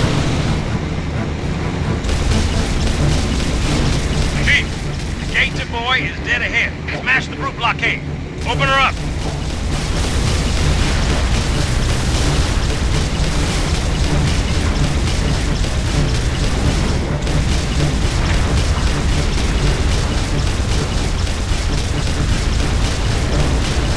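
A vehicle engine roars steadily as it speeds along a road.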